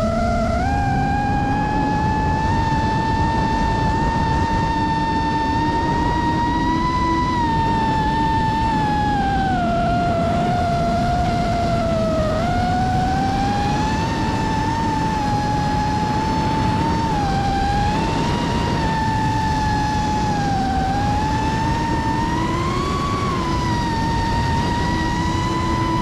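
A drone's motors whine close by, rising and falling in pitch.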